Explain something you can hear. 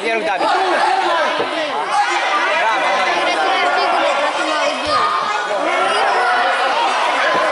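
Children shout and call out excitedly in an echoing indoor hall.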